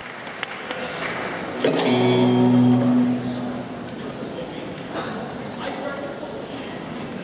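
A drummer taps on drums and cymbals.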